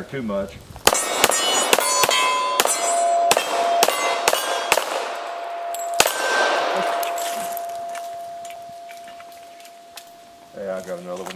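Steel targets clang and ring after being hit.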